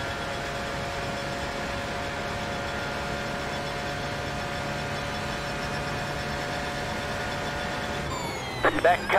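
A racing car engine drones at a steady high pitch.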